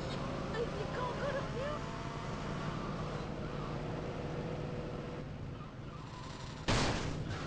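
A car engine hums steadily as the car drives.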